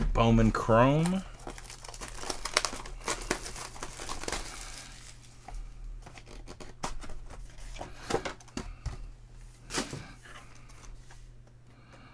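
Plastic wrap crinkles as a box is unwrapped.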